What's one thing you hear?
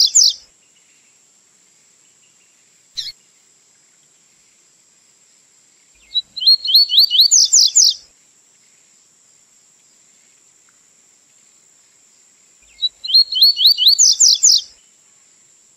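A small bird sings loud, fast trilling phrases close by.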